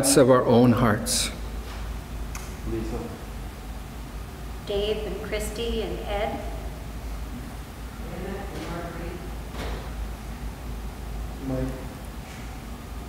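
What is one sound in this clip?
An elderly man reads aloud slowly into a microphone in a hall with some echo.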